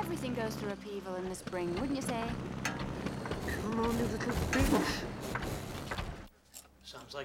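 A woman talks with animation.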